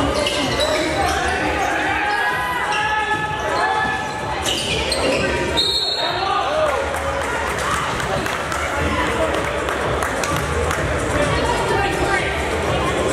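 A crowd of young people shouts and chatters in an echoing gym.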